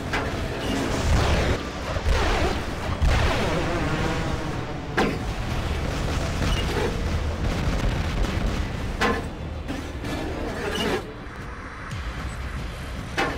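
Heavy mechanical footsteps thud and clank.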